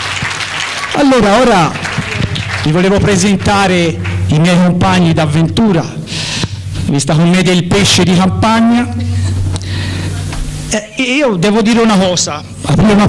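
An elderly man speaks loudly through a microphone and loudspeaker in a large echoing hall.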